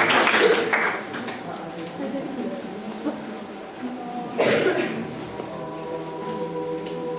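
A choir of women and men sings softly in a large hall.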